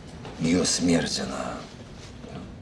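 A middle-aged man speaks close by with animation.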